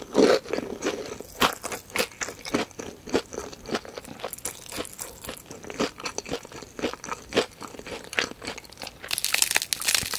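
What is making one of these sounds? A woman chews crispy fried chicken close to a microphone.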